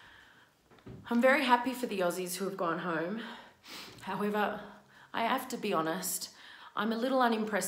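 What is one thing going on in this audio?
A woman speaks calmly and emotionally, close to a microphone.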